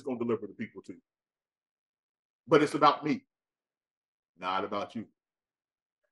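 A man speaks clearly in short phrases into a microphone.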